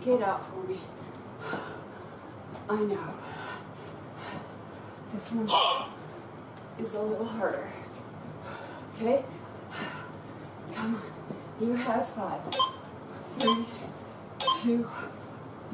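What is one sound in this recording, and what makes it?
Feet thump on the floor as a woman hops.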